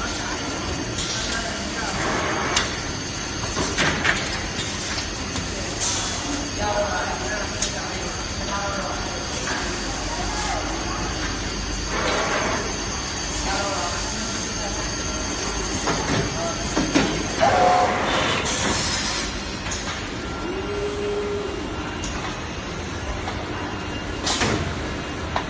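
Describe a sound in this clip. Pneumatic clamps hiss and clack.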